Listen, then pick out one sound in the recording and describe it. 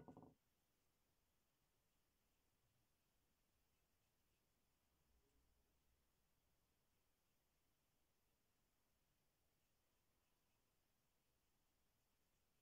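A brush strokes softly on paper.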